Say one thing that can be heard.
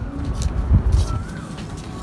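A boy's footsteps scuff on a paved walkway.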